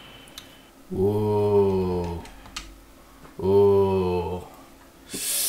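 A young man makes long, drawn-out vocal sounds close to a microphone.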